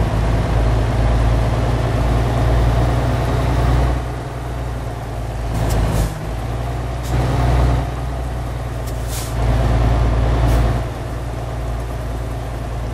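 A truck engine rumbles steadily, rising and falling in loudness.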